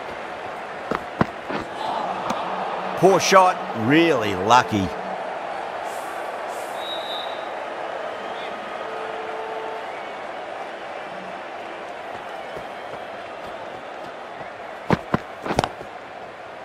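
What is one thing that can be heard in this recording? A bat strikes a cricket ball with a sharp knock.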